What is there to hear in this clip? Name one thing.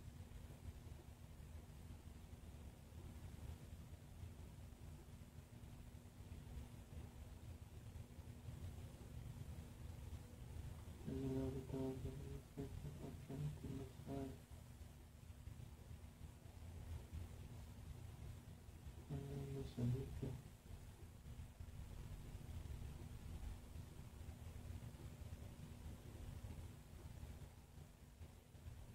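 A fan whirs steadily.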